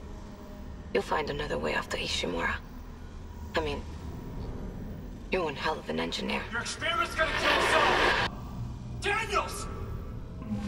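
A young woman speaks calmly through a recorded message.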